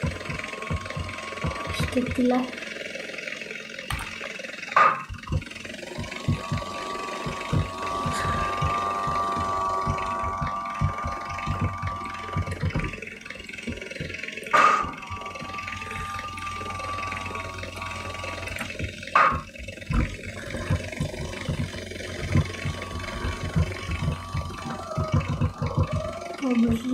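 A motorbike engine drones and revs.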